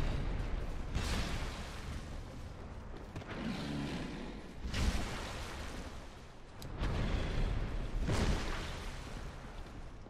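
Heavy blows thud and swoosh.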